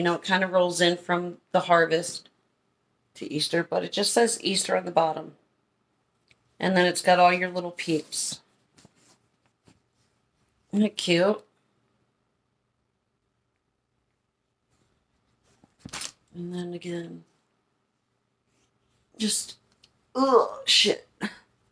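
A woman talks close by with animation, in short bursts with pauses.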